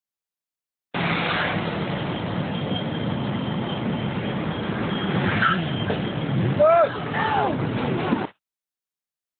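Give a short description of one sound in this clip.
Motorcycle engines roar loudly.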